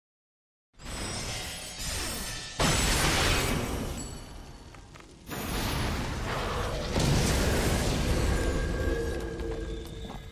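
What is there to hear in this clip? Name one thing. Magic spells whoosh and rumble.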